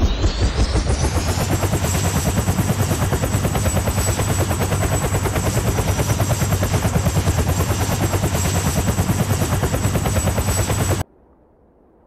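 A game helicopter's rotor chops loudly and steadily.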